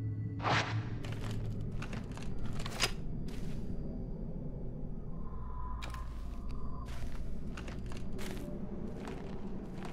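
Footsteps thud slowly on the ground.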